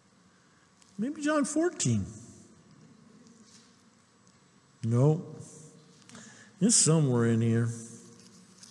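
A middle-aged man speaks slowly and expressively through a microphone, with long pauses.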